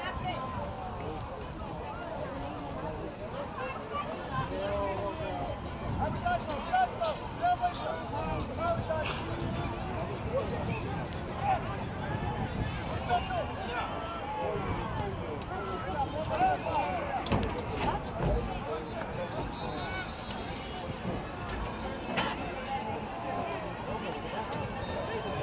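Young children shout and call out across an open field.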